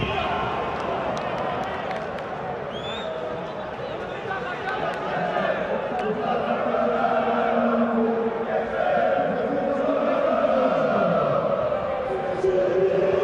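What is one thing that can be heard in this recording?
A stadium crowd chants and sings throughout, echoing in the open air.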